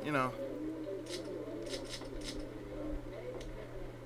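Casino chips click together as a bet is placed.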